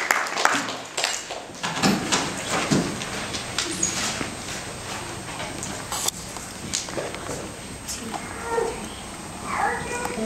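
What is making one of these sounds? A girl speaks into a microphone, heard through loudspeakers in an echoing hall.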